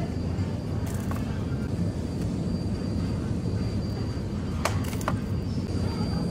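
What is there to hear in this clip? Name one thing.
A plastic coffee cup is set down into a wire shopping cart.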